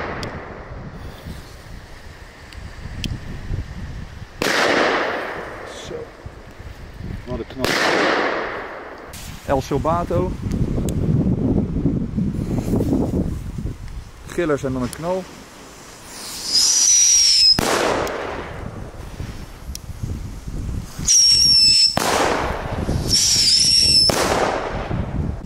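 A ground spinner firework hisses and sputters as it skids across pavement.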